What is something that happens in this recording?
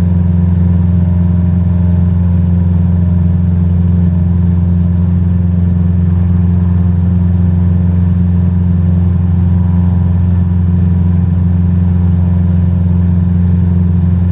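A small plane's propeller engine drones steadily.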